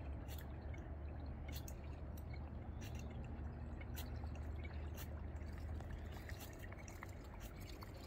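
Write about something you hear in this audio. A fishing reel clicks softly outdoors.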